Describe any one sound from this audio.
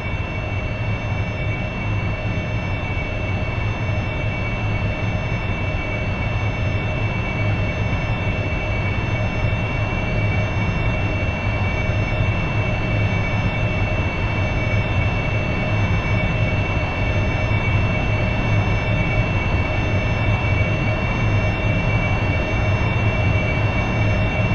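A jet engine roars steadily with a high whine.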